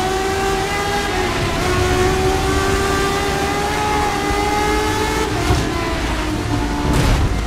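A racing car engine roars at high revs, dropping in pitch as it shifts down.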